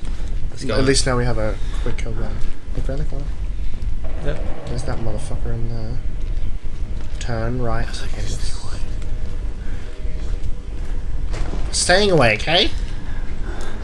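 A young man talks and exclaims excitedly, close to a microphone.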